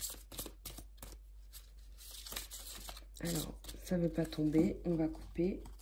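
Cards riffle and flick against each other as a deck is shuffled.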